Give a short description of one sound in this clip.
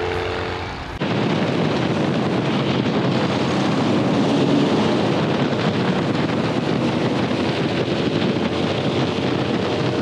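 A go-kart engine roars at speed from on board.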